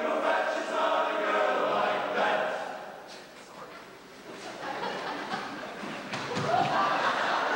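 A large choir of young voices sings together in an echoing hall.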